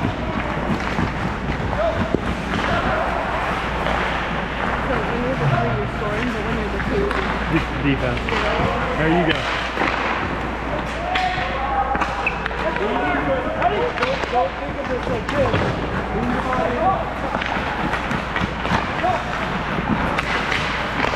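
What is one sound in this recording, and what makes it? Young men talk and call out nearby in a large echoing rink.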